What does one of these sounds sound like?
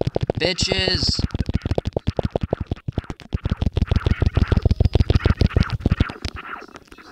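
Rapid electronic blaster shots fire in quick succession.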